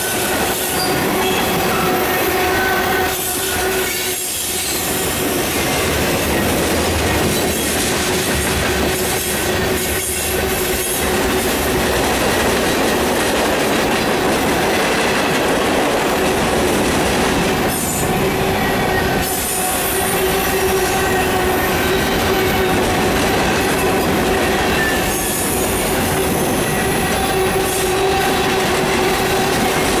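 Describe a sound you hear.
A long freight train rumbles past close by with a steady roar.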